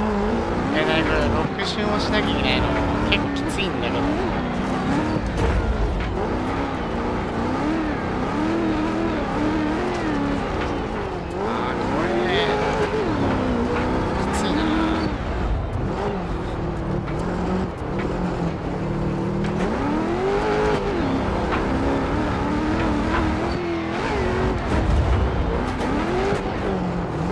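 A race car engine roars and revs up and down continuously.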